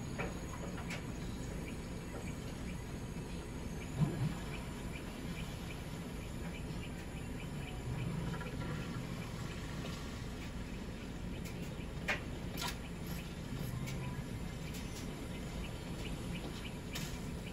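Light footsteps patter quickly on grass, heard through a television speaker.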